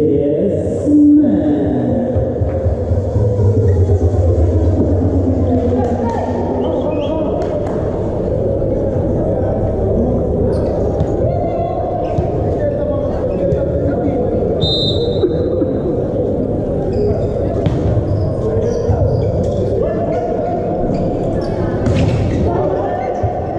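Men shout to each other on court in a large echoing hall.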